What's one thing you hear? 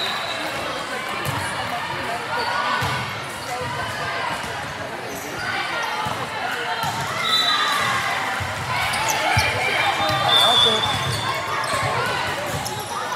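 Voices of girls and spectators chatter and call out throughout, echoing in a large hall.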